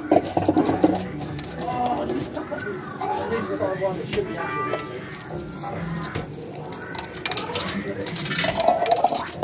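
A slot machine plays a short warbling electronic tune.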